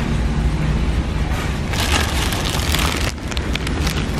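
Plastic wrapping crinkles as a large pack is pulled off a stack.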